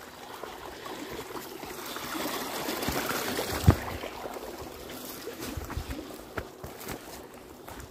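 A young man runs through dry brush, rustling it.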